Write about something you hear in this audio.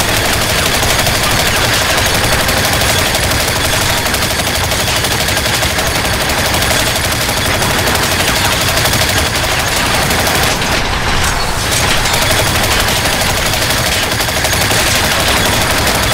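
A laser gun fires rapid shots.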